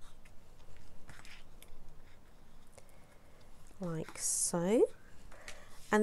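A bone folder scrapes firmly along creased paper.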